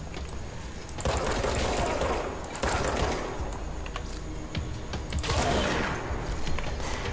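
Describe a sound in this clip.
Gunfire booms in short, rough bursts.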